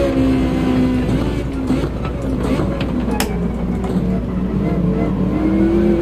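A racing car engine drops in pitch as the car brakes for a corner.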